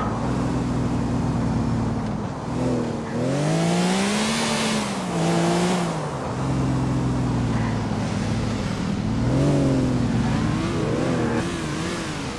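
Tyres screech on the road as a car skids.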